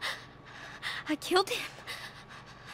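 A young woman speaks in a shaky, upset voice.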